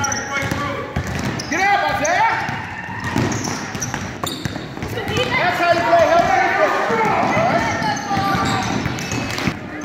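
Children shout and call out in an echoing hall.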